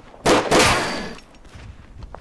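Two loud gunshots blast close by.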